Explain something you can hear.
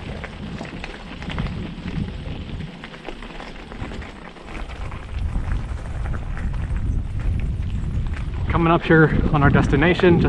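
Bicycle tyres crunch over loose gravel.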